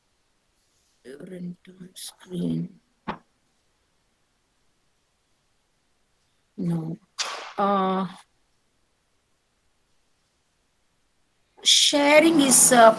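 A middle-aged woman speaks in short bursts over an online call, with pauses between.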